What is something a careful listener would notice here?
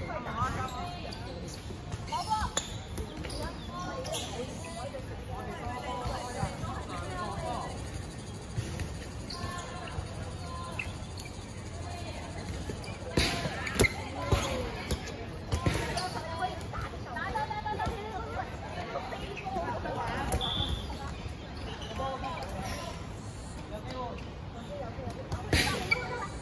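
Young women chatter and call out nearby outdoors.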